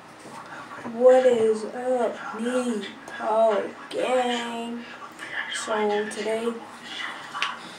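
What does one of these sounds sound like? A boy talks close by, casually.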